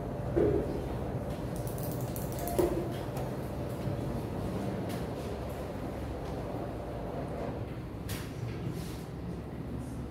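Papers rustle and shuffle close by.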